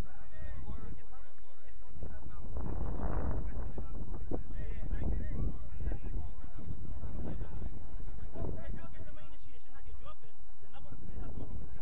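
A man talks to a group outdoors, heard from a distance.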